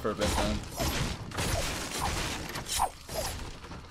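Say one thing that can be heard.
A pickaxe strikes wood with sharp knocks.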